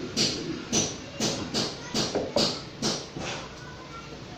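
Slippers slap on a hard floor in quick steps.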